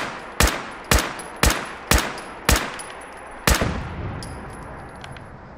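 A rifle fires shot after shot, each blast echoing away.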